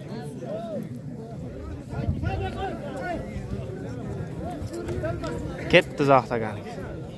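A crowd of men talks and calls out outdoors.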